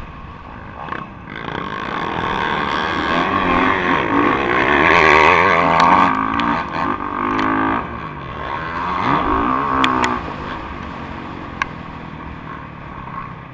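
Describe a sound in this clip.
Other dirt bike engines whine nearby.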